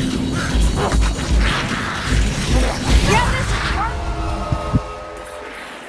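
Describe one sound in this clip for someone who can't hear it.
Weapons clang and thud in a fierce melee.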